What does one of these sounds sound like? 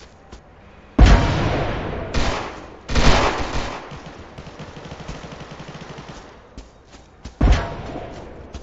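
Loud explosions boom and rumble away.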